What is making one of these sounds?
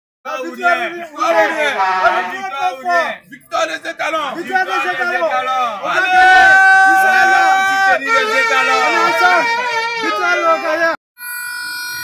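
Young men shout and cheer excitedly close by.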